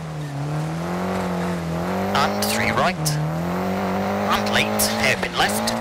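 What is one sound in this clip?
A rally car engine drones loudly, its pitch dipping and rising with gear changes.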